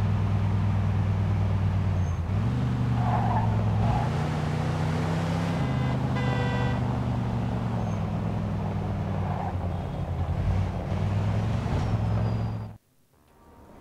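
A car engine hums steadily and changes pitch as the car drives.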